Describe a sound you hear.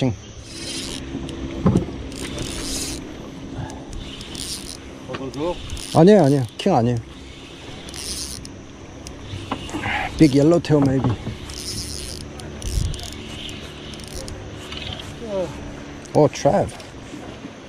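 A fishing reel clicks and whirs as it is wound in.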